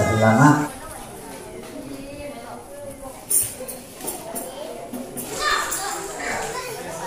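A man speaks through a microphone and loudspeaker in an echoing hall.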